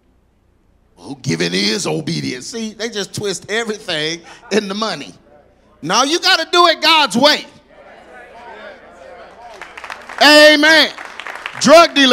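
A middle-aged man speaks with animation into a microphone, heard through loudspeakers in a large echoing hall.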